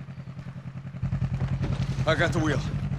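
An off-road buggy engine drones while driving.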